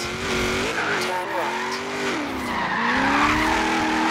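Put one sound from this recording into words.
Tyres screech on the road during a drift.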